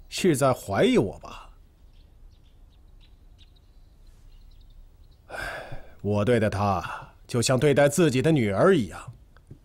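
An older man speaks calmly and firmly at close range.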